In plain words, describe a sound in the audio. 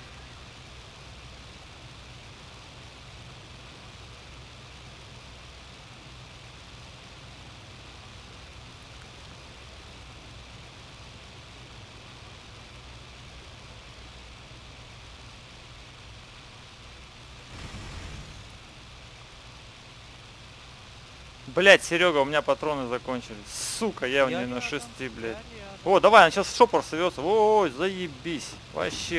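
A propeller aircraft engine drones steadily.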